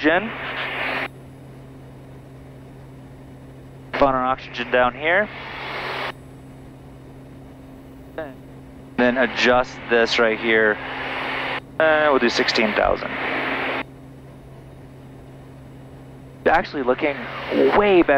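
A man speaks calmly through a headset microphone, in bursts.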